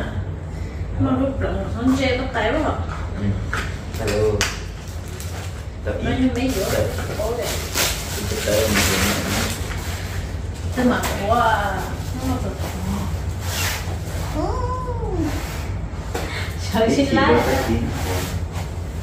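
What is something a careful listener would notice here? A young woman talks casually.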